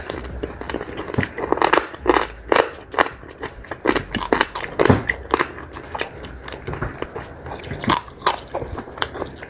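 A man chews food noisily and smacks his lips close by.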